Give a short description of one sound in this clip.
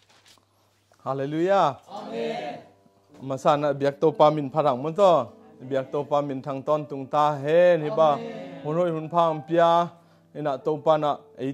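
A man sings loudly and clearly close by, with pauses between phrases.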